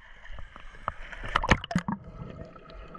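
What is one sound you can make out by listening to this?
A swimmer splashes into the water.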